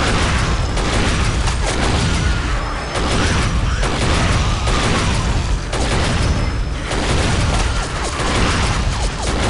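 Twin cannons fire in rapid bursts.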